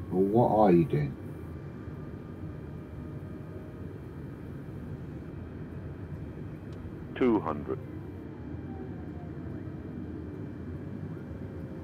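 Jet engines drone with a steady low roar.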